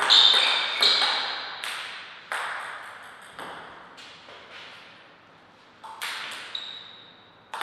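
A table tennis ball clicks sharply off paddles and the table, echoing in a large hall.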